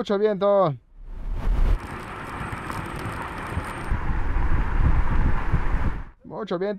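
An electric car speeds away.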